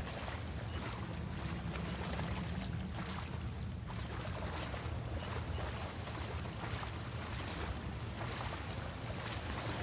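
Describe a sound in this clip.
Water splashes softly as someone wades through it.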